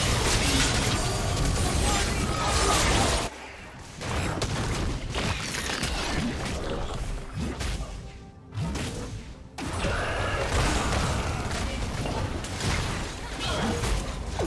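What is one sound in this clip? Magic blasts and hits crackle and boom in a fast fight.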